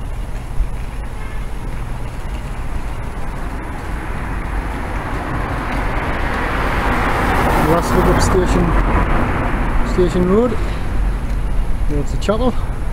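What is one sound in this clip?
Tyres roll on the road surface with a rising hiss.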